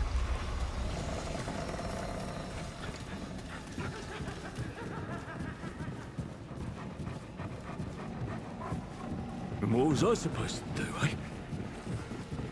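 Footsteps thud on wooden floors and stairs.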